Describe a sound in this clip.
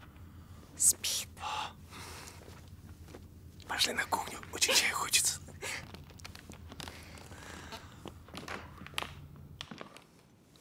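A man speaks in a low, hushed voice close by.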